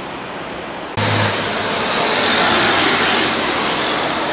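A bus engine hums nearby.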